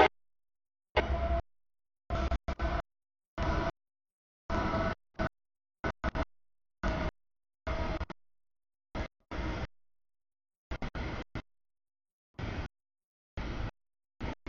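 A freight train rumbles and clatters past on the tracks.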